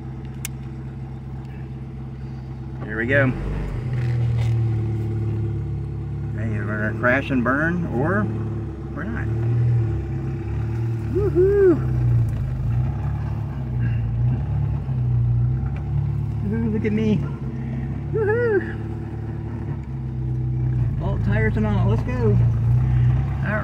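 A vehicle engine hums steadily, heard from inside the vehicle.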